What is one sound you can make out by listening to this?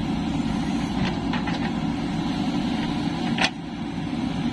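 A metal bucket scrapes and knocks against rocky soil.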